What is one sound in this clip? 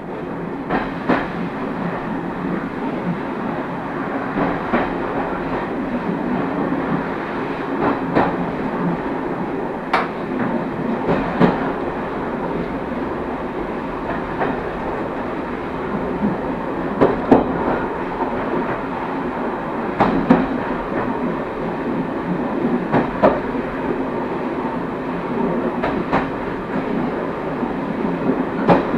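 Train wheels clack over rail joints now and then.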